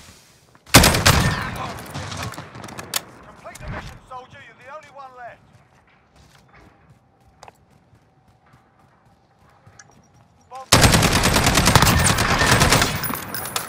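A rifle fires rapid, loud bursts of shots.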